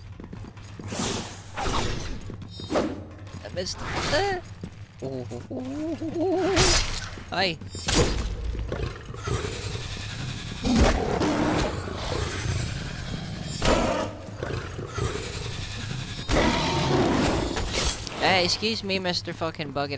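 Blades slash and strike with sharp impacts.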